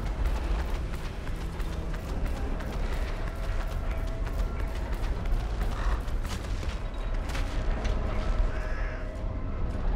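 Heavy footsteps thud on rocky ground.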